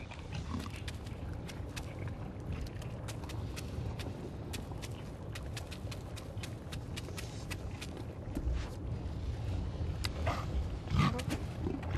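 Clawed feet tap and stomp quickly on a hard floor.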